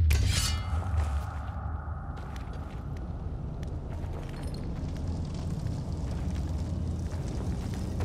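A fire crackles and hisses nearby.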